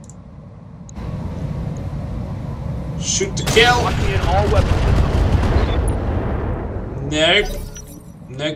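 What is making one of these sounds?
Explosions boom with a deep, rolling rumble.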